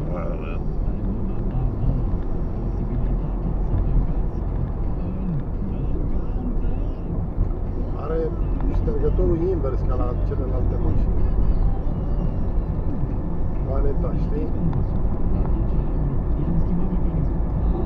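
A car engine hums and tyres rumble on the road from inside the car.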